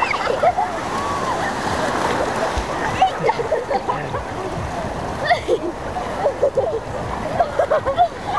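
A girl splashes through the water.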